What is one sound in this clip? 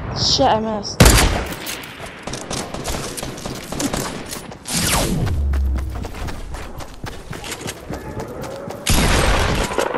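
A pistol fires sharp shots in quick succession.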